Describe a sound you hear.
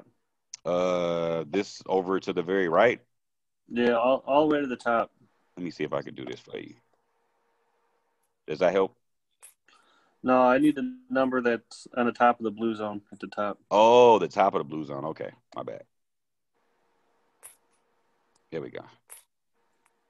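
A man talks calmly and close to a microphone, with pauses.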